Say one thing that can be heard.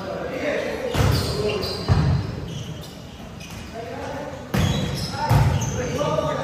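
A volleyball is hit with sharp slaps that echo in a large hall.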